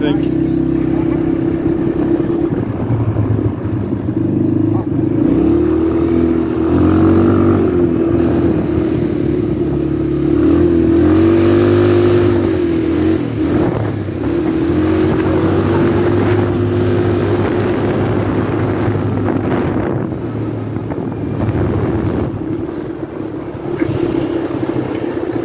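Wind rushes past loudly.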